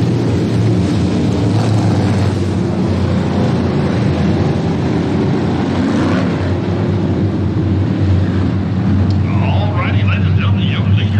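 A pack of race car engines roars loudly around a dirt track.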